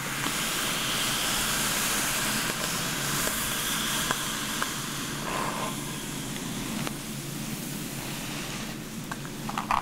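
A brush sweeps softly through long hair.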